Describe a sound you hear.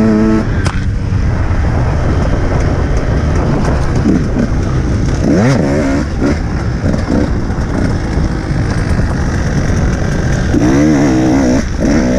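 A dirt bike engine roars close by, revving up and down.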